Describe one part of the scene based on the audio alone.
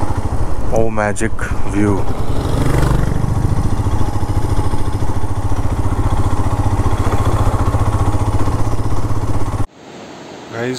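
A motorcycle engine thumps steadily up close.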